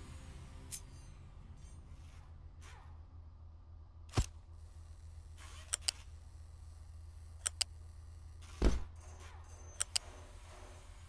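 Quick light clicks sound now and then.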